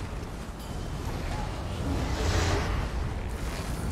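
Magic spells crackle and burst with bright impacts.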